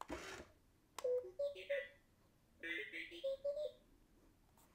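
A toy robot beeps and chirps in quick electronic tones.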